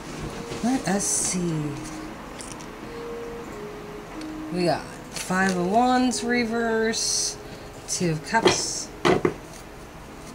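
Playing cards slide and tap against a hard tabletop.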